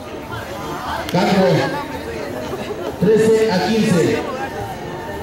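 Young men shout and cheer loudly.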